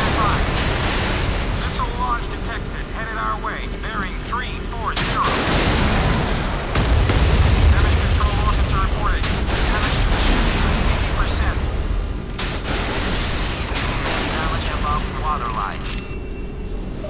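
Waves rush against a ship's bow.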